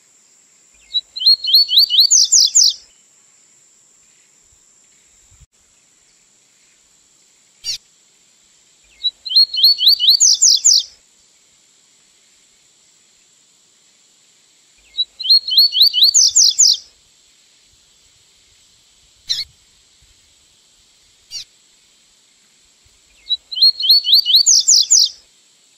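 A small songbird sings a quick, rising trilled phrase, repeated several times with pauses.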